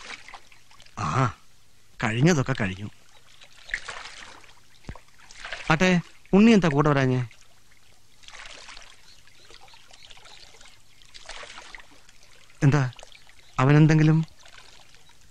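A young man speaks in a low, pleading voice.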